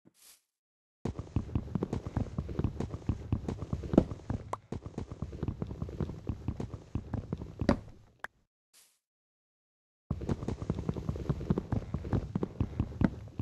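Wood is chopped with quick, repeated knocks.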